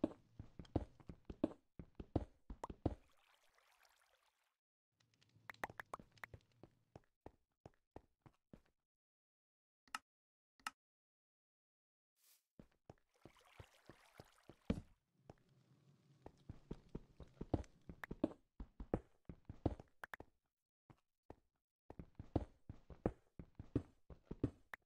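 A pickaxe chips at stone blocks in quick knocks.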